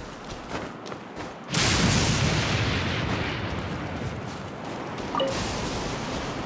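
Light footsteps patter quickly over rock and grass.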